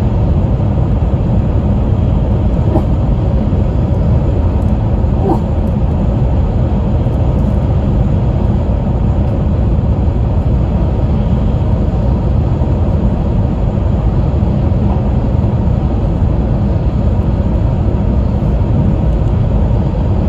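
A train rumbles steadily at speed, heard from inside a carriage.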